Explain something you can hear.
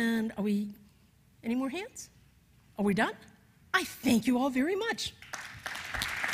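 An older woman speaks with animation through a microphone in a large hall.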